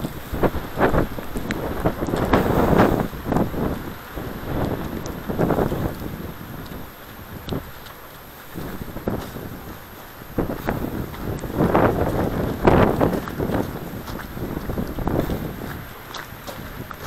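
Footsteps crunch and scrape on icy snow outdoors.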